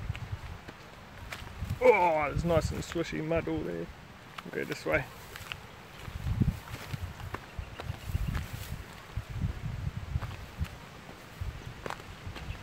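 Footsteps crunch over dry grass and loose stones.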